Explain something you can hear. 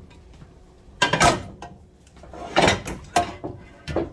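A plastic container clatters and rattles as it is handled.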